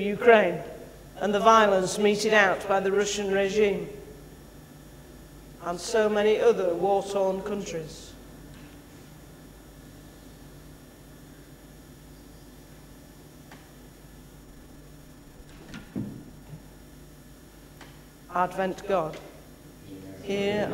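A man speaks calmly through a microphone in a large echoing hall, with long pauses.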